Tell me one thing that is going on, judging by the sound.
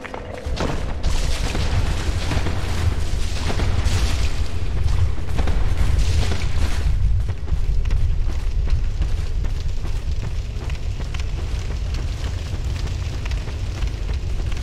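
Footsteps crunch quickly on rough ground.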